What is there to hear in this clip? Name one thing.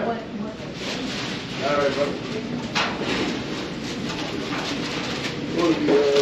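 A man talks quietly nearby indoors.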